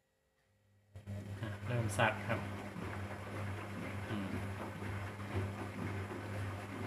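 A washing machine hums steadily as its drum turns and churns water.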